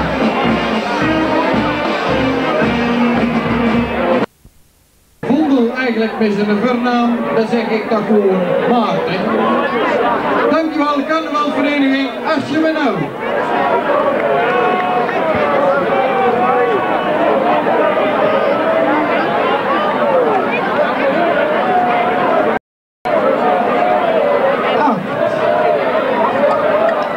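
A brass band plays a lively tune.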